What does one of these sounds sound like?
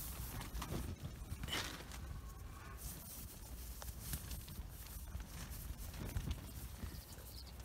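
Nylon fabric rustles softly as a hand handles it.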